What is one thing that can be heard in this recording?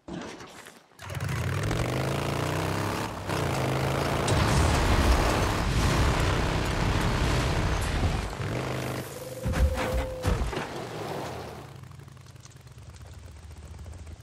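A motorcycle engine starts and revs loudly.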